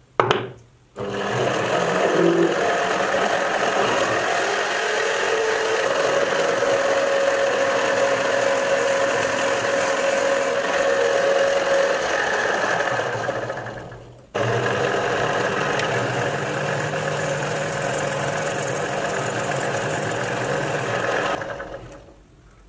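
A lathe motor whirs steadily.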